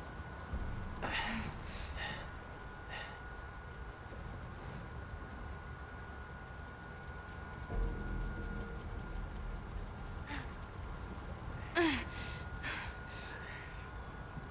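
A young woman talks quietly into a close microphone.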